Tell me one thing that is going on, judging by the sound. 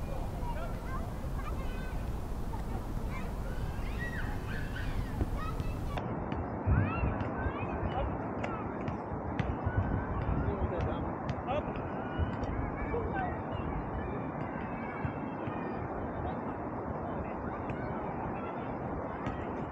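Young men shout to each other from a distance outdoors.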